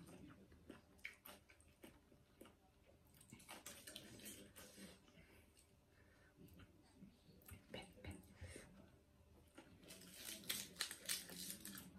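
A young woman crunches crisp food loudly close to a microphone.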